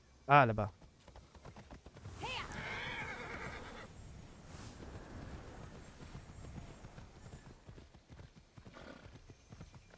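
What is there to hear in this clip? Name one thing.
Horse hooves thud steadily on grass and dirt.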